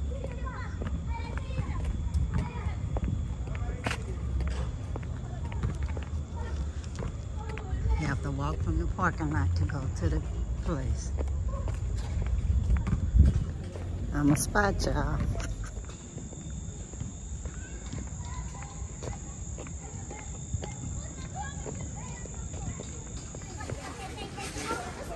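Footsteps walk along a paved path.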